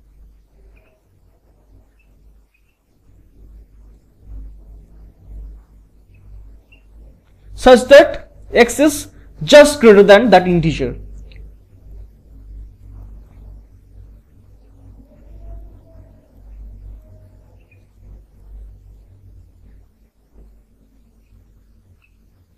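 A marker squeaks softly on a whiteboard.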